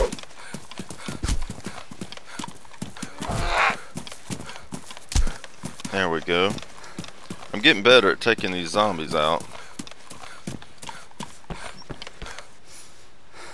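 Footsteps crunch steadily over grass and dirt.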